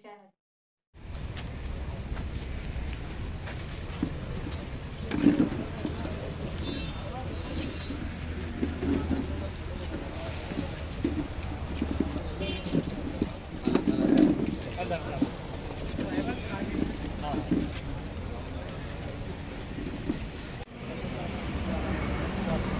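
A crowd of men talk over one another outdoors.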